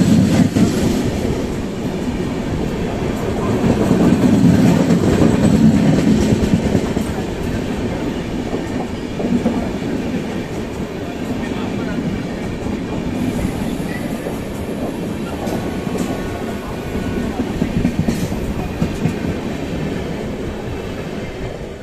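A subway train rumbles and rattles loudly through a tunnel.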